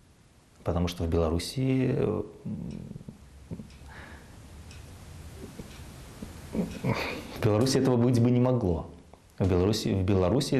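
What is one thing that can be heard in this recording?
A middle-aged man speaks calmly and warmly into a close microphone, pausing now and then.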